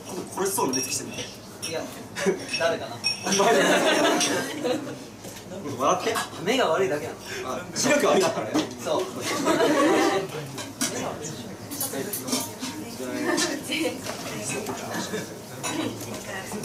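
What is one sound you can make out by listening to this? A young woman talks cheerfully into a microphone.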